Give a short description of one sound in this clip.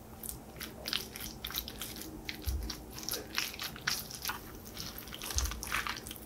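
Salad leaves rustle and crunch as they are mixed.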